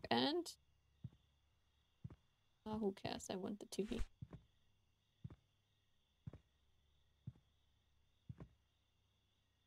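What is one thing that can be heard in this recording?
Soft footsteps thud slowly on a wooden floor.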